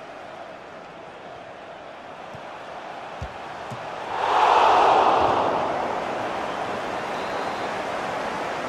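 A stadium crowd murmurs, then roars loudly and slowly settles.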